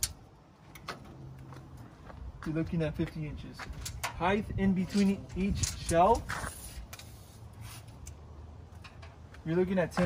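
A metal tape measure clicks and rattles as it extends and retracts.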